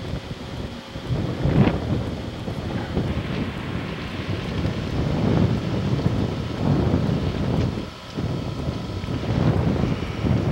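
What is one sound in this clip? Small waves wash gently onto a beach outdoors.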